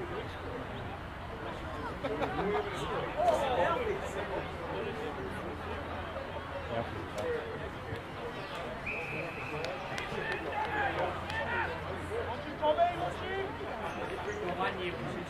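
Men shout and call out outdoors on a sports field.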